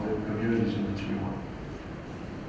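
A man asks a question through a microphone.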